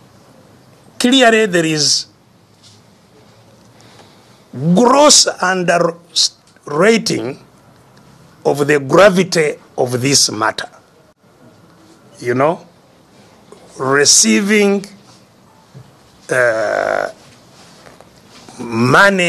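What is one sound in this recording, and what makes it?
An elderly man speaks intensely in short bursts with pauses, heard through a microphone.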